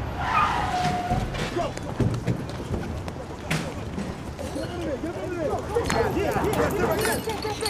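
People scuffle with thuds and shuffling.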